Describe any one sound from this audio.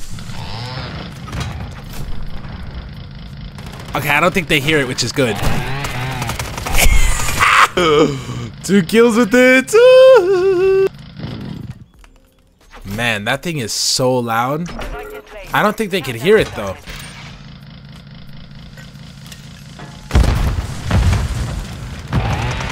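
A chainsaw revs and buzzes.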